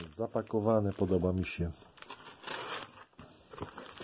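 Scissors slice through packing tape on a cardboard box.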